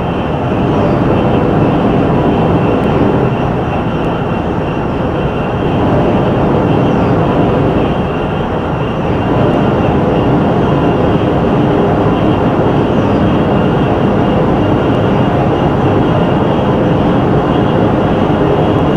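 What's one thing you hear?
A high-speed train roars steadily along the tracks.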